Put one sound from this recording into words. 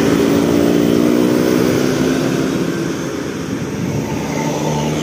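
Motorbikes buzz past close by.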